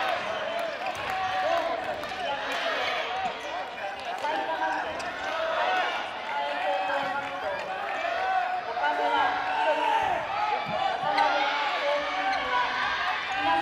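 Sneakers squeak on a court floor in a large echoing hall.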